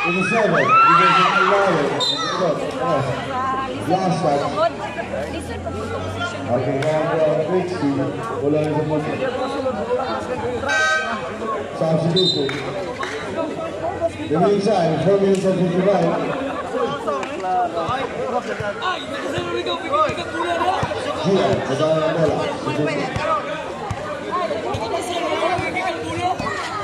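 A crowd of spectators chatters and cheers nearby, outdoors.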